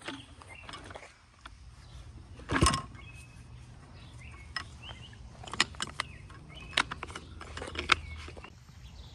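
Plastic pipe fittings click and knock as they are fitted.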